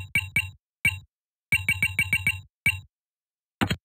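Keypad buttons beep with quick electronic tones.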